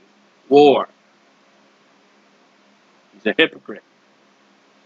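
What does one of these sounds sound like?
A man speaks briefly and calmly into a close microphone, with pauses.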